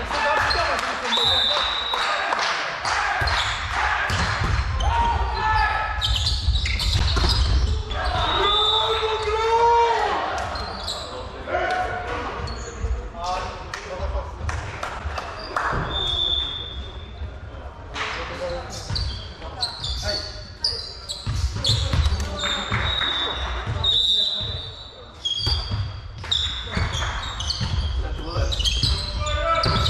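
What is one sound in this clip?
Players call out and shout to each other.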